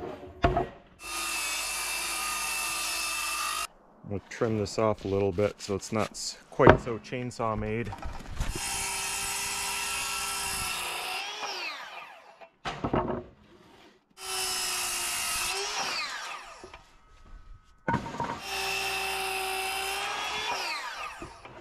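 A circular saw whines loudly as it cuts through wood, in short bursts.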